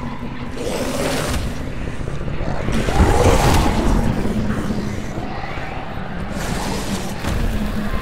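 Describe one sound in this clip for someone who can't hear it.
A large creature growls deeply.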